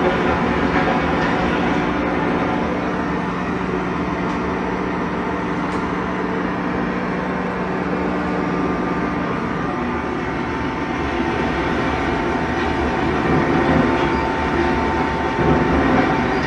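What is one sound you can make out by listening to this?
A mining machine rumbles and hums steadily through loudspeakers.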